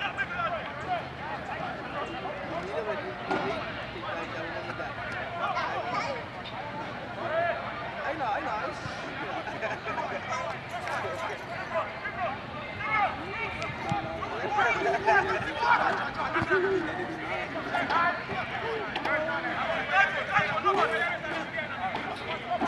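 Spectators chatter and call out nearby.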